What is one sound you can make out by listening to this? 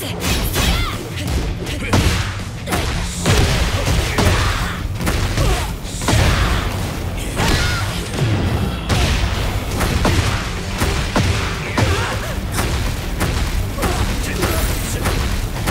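Heavy punches and kicks land with sharp thuds.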